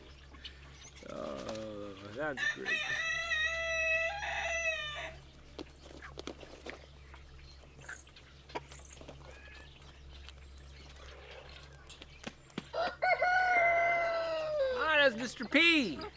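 A rooster crows loudly nearby.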